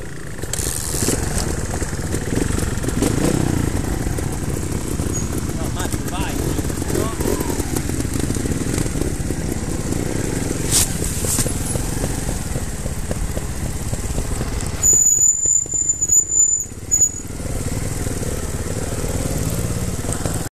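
A motorcycle engine idles and revs nearby.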